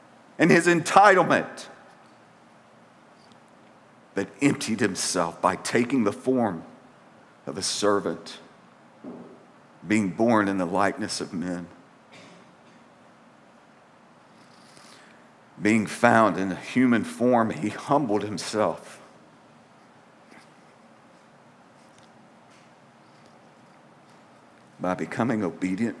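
A middle-aged man reads out slowly and calmly through a microphone, with long pauses.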